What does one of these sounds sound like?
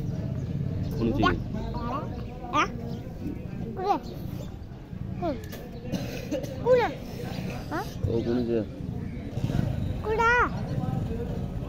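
A young boy talks and exclaims excitedly close by.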